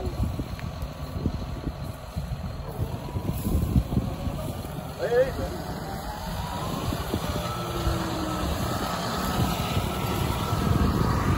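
A baler rattles and whirs as it is towed over stubble.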